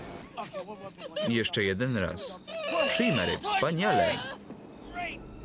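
A man cries out in distress.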